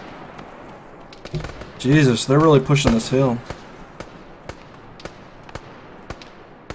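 Footsteps crunch steadily on gravel and dirt.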